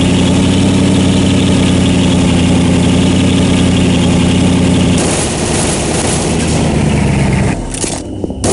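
A vehicle engine hums steadily and then cuts off.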